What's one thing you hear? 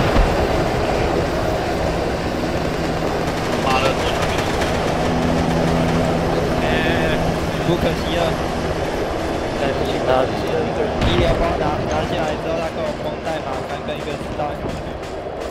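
Boots crunch on the ground as soldiers run.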